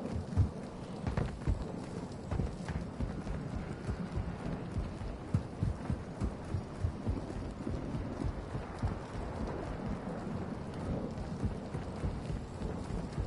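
Footsteps thud quickly on hard ground while running.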